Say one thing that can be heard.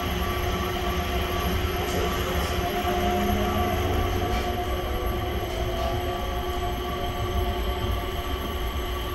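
A train rumbles and hums steadily while moving.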